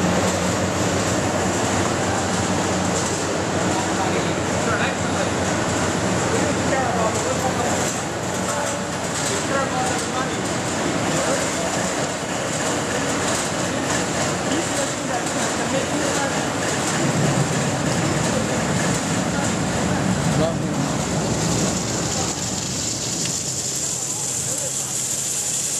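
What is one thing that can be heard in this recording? Factory machinery hums and rattles loudly and steadily.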